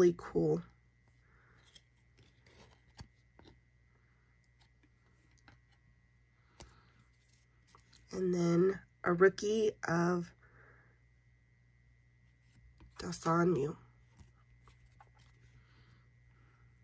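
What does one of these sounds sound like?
Trading cards softly rustle and click as they are flipped through by hand.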